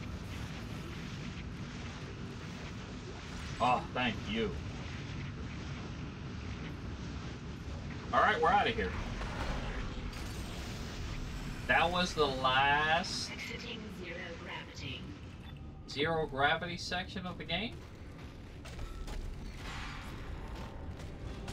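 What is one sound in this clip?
Heavy boots clank on a metal floor.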